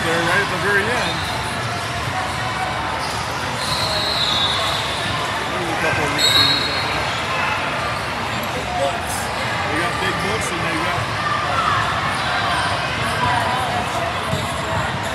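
A crowd of young people chatters steadily in a large echoing hall.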